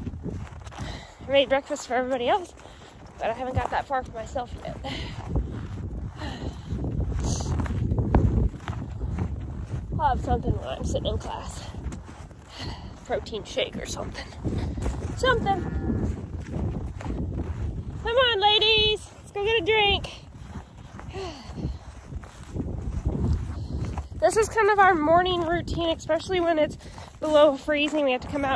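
A young woman talks close by, calmly.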